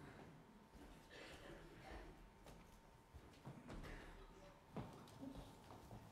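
Footsteps move across a floor.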